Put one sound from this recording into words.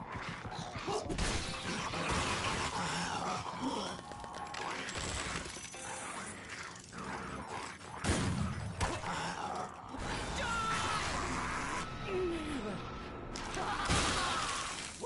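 Heavy blows land with wet, thudding impacts.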